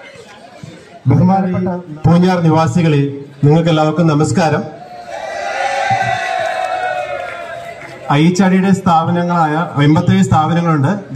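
A man speaks loudly and forcefully into a microphone through a loudspeaker.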